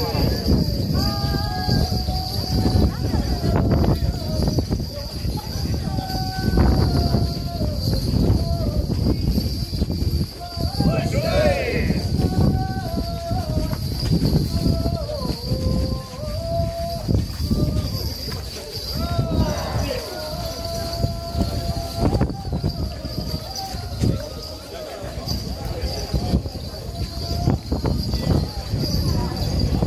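A crowd of men chant together loudly in rhythm, close by.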